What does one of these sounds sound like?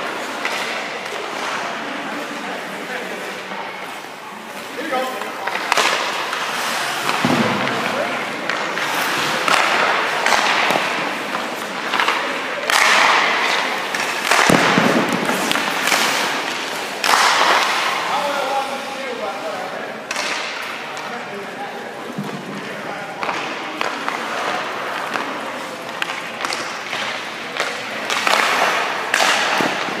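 Ice skates scrape and hiss across the ice in bursts.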